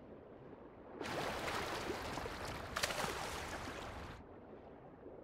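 A child splashes through shallow water.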